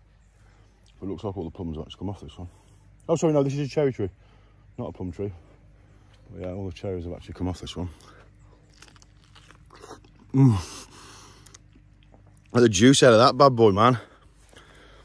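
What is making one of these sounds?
A man talks casually, close by.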